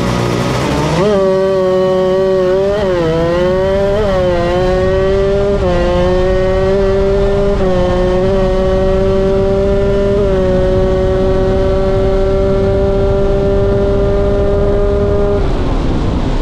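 A motorcycle engine roars at high speed, shifting through gears as it accelerates.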